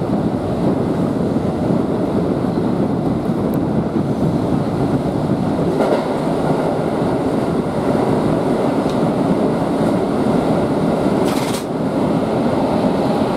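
A subway train rumbles steadily along the tracks through a tunnel.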